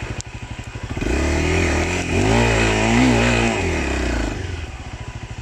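A motorcycle engine revs up and down loudly.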